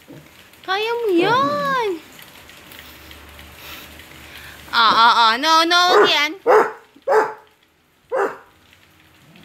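A basset hound whines and howls in long, wavering cries.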